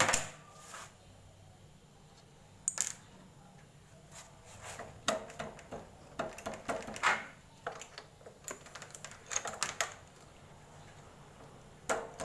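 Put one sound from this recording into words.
Hands knock and clatter against motorcycle parts near the rear wheel.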